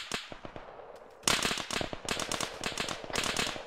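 A rifle fires in rapid shots.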